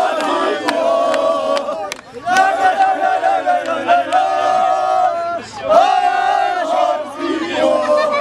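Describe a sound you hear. A crowd of men chants and sings loudly close by.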